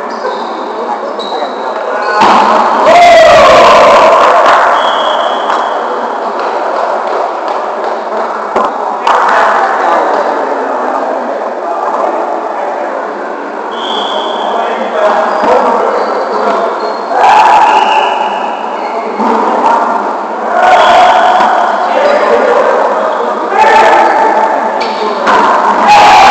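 Men shout and call out to each other in a large echoing gym.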